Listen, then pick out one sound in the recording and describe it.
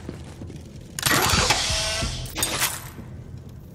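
A metal crate opens with a loud clank and whoosh.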